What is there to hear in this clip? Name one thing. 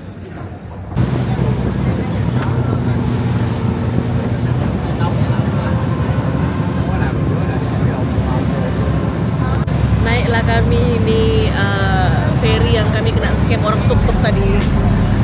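Water churns and splashes beside a moving boat.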